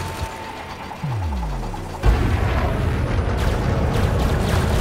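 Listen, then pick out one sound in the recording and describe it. A spaceship engine surges into a loud, deep roar.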